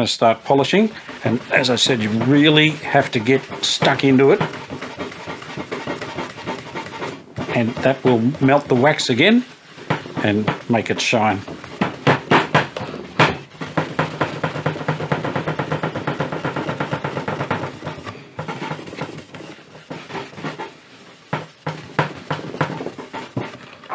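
A cloth rubs back and forth over a smooth wooden surface.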